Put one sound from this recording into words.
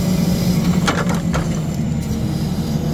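Logs knock against each other.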